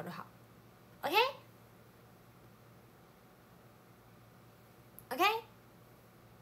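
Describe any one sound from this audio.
A young woman gives a short, rising squeal close by.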